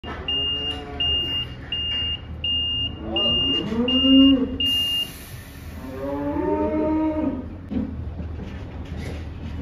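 A truck engine rumbles low nearby.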